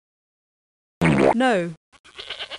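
A ram bleats.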